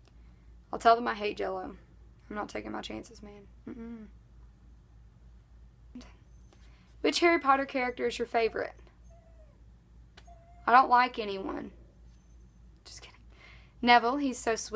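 A teenage girl speaks calmly and close to a microphone, in short phrases with pauses.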